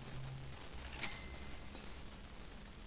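A short coin-like chime rings as an item is sold.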